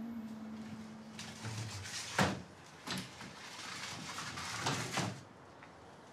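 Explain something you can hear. Footsteps cross a hard floor indoors.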